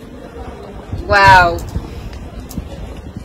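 A young woman laughs softly close to a microphone.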